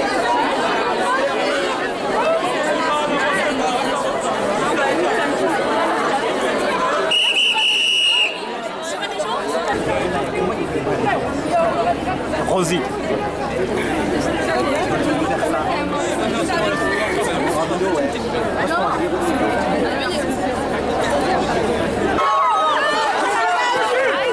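A crowd of men and women chatters and calls out close by, outdoors.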